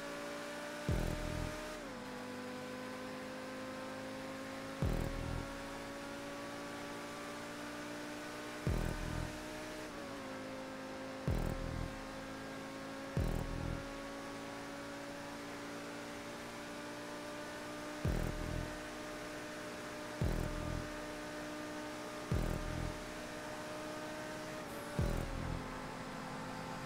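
A sports car engine roars steadily at high speed, shifting gears now and then.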